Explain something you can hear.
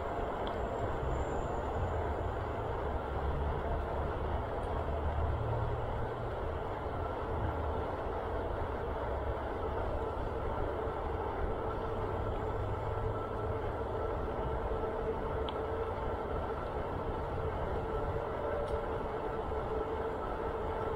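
Bicycle tyres hum steadily on pavement.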